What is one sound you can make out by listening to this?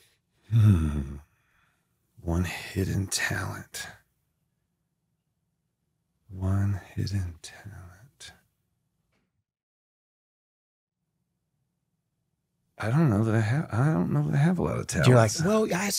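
A middle-aged man speaks calmly and haltingly into a close microphone.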